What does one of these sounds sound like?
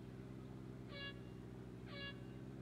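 Electronic beeps sound twice, a second apart.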